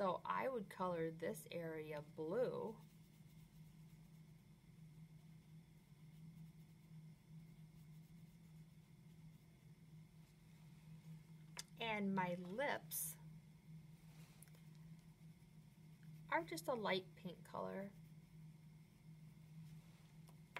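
A crayon scratches softly on paper.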